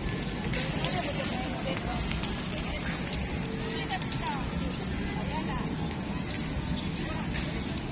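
Children call out and chatter in the distance.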